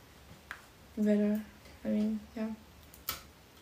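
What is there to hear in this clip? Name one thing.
A young woman speaks softly close by in short phrases.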